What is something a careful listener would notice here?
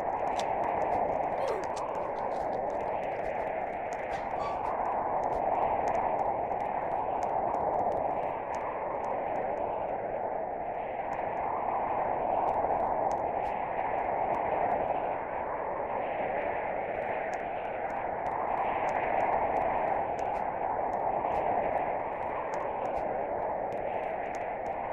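A tornado roars with a strong, steady rushing wind.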